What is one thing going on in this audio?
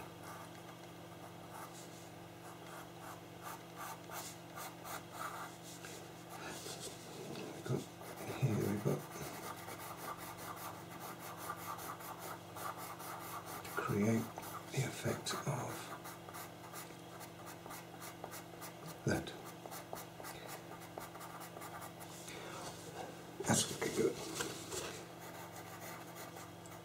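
A pencil scratches softly on paper with quick, light strokes.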